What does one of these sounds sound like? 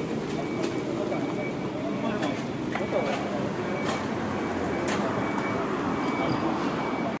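A bus engine idles with a steady low rumble close by.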